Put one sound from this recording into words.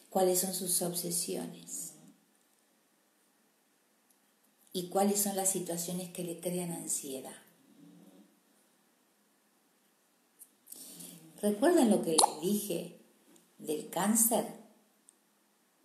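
An older woman speaks expressively and close up, with pauses between phrases.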